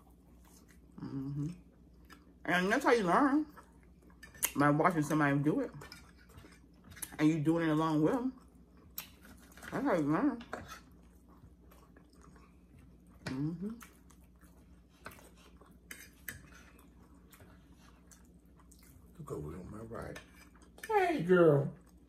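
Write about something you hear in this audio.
A middle-aged woman hums loudly while eating, close to a microphone.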